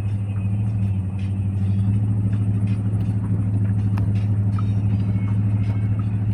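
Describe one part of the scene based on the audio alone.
Tyres rumble on a paved road.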